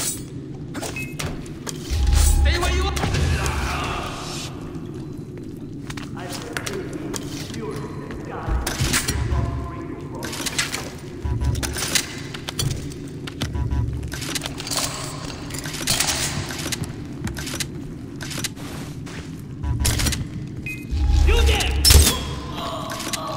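Footsteps thud on a hard floor in an echoing space.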